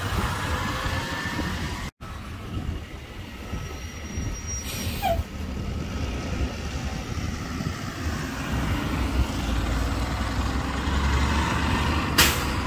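A city bus engine rumbles as the bus drives by and pulls away.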